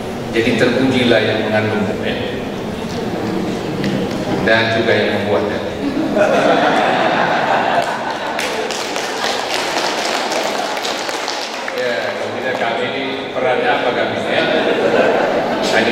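A man speaks into a microphone over loudspeakers in an echoing hall.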